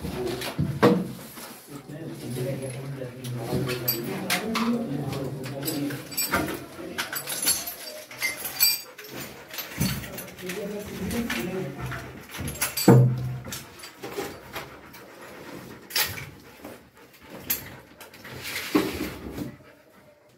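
Objects knock and thud as they are moved about.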